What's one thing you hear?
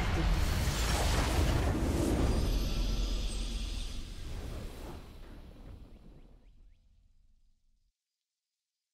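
A triumphant game fanfare booms and slowly fades out.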